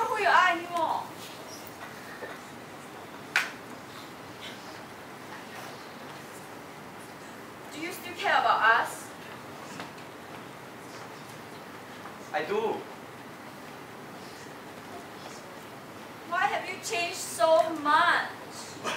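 A young woman speaks on a stage in a large echoing hall.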